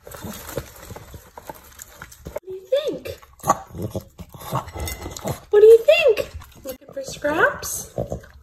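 A small dog laps and licks at a plate.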